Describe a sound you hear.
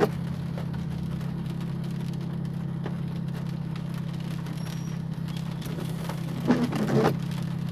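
Raindrops patter on a car windshield.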